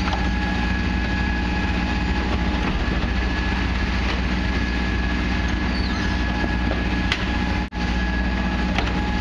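A garbage truck engine hums loudly and steadily.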